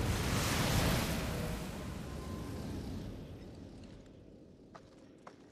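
A loud hiss of rushing steam fades away.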